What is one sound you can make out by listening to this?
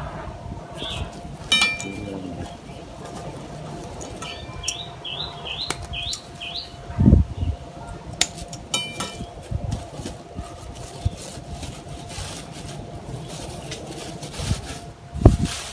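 A plastic bag rustles and crinkles as hands untie it.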